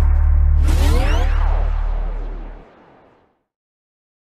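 Electronic game music with a heavy bass beat plays, with sweeping synth tones, then fades out.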